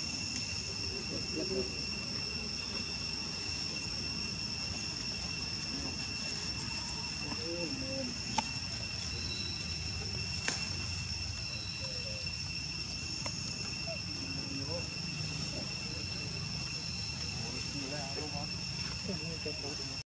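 Monkeys give short squeaky calls nearby.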